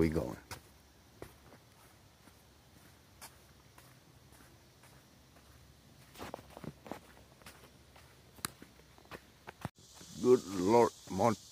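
Footsteps tread on a dirt trail.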